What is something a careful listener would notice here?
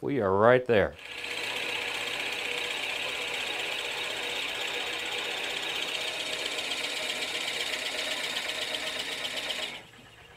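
A gouge cuts into spinning wood on a lathe with a steady, rasping whir.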